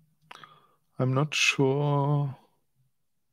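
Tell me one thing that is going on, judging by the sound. A man speaks briefly and close to a microphone.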